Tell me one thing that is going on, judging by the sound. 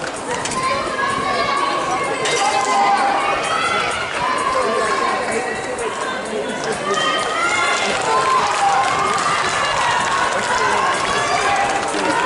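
A crowd of spectators chatters nearby in an open stadium.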